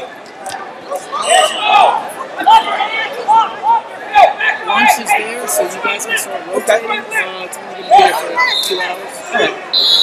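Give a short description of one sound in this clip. Men shout from around the mat with excitement.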